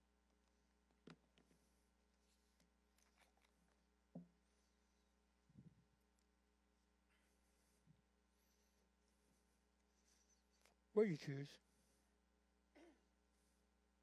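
An older man speaks over a microphone, in short bursts with pauses.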